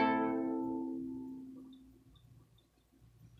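A plucked mandolin chord rings out and slowly fades.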